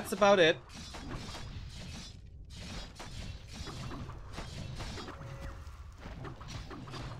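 Swords clash and spells crackle in a fantasy battle.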